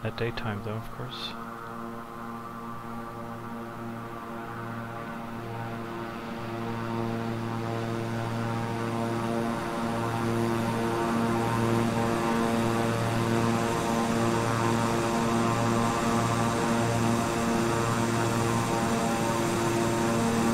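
An aircraft engine drones steadily, growing louder as it comes closer.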